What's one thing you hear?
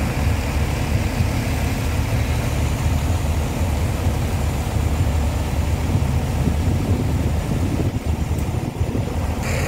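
Water gushes from a pipe into a flooded field.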